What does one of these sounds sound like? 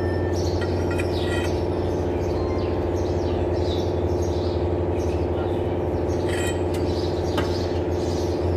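A ratchet wrench clicks against metal engine parts.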